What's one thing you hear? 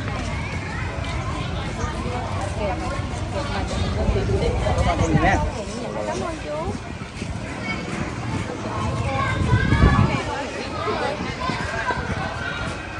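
Several men and women talk at once nearby, outdoors.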